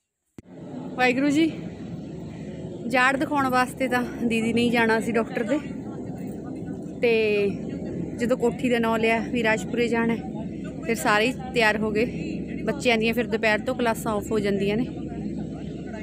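A middle-aged woman talks with animation nearby.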